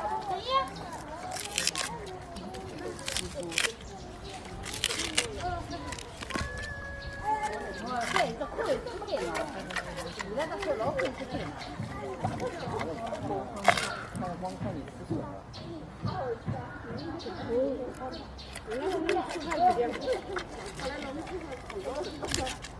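A panda crunches and chews bamboo up close.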